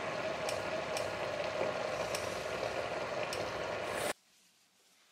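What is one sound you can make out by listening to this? A pot bubbles noisily on a hob.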